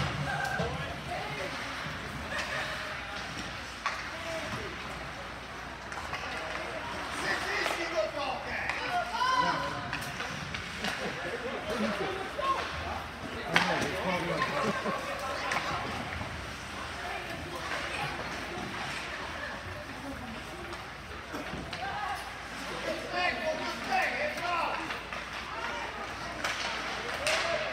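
Spectators chat nearby in an echoing rink.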